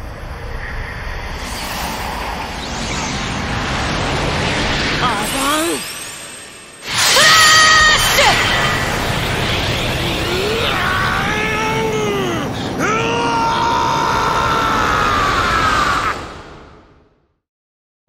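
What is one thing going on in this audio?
A rushing energy blast roars and surges, then fades away.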